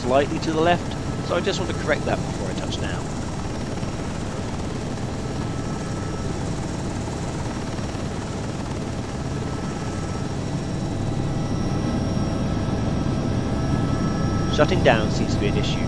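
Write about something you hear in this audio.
A helicopter engine hums steadily as its rotor turns slowly.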